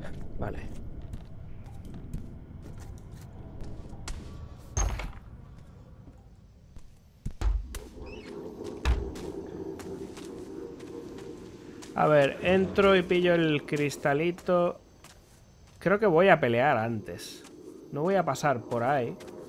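Footsteps scuff slowly over a hard floor and gravel.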